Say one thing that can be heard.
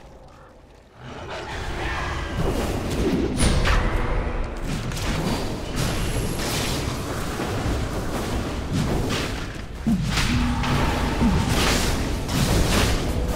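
Game spells and weapon hits clash and crackle in a busy fight.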